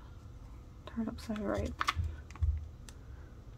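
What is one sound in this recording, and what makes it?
A small plastic case clicks and rattles in the hands.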